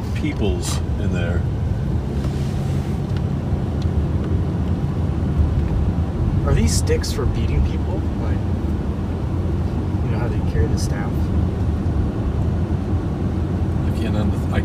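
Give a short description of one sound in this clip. A car engine hums steadily with road noise inside the car.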